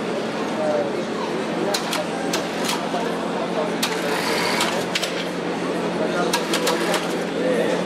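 An electric tracked wheelchair whirs as it turns on a hard floor.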